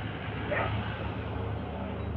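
A motorbike engine putters along a road.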